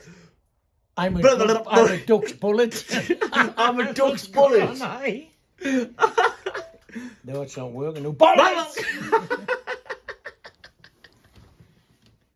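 An elderly man laughs heartily close by.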